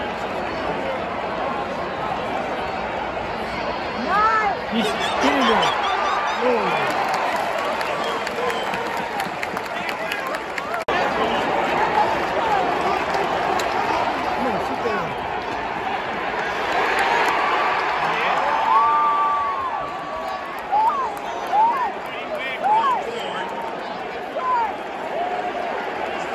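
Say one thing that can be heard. A large stadium crowd roars and chatters loudly all around outdoors.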